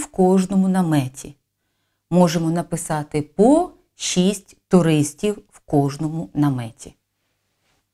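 A woman speaks clearly and calmly close to a microphone.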